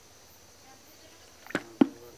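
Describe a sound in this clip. Wriggling fish drop with a thud into a bucket.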